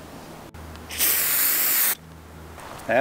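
A spray can hisses.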